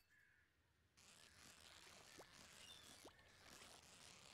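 A fishing reel whirs steadily.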